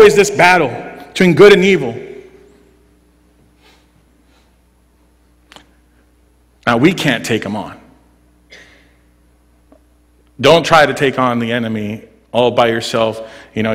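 A man speaks with animation through a microphone, in a hall with a slight echo.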